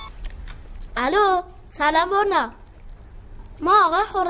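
A young boy speaks into a phone.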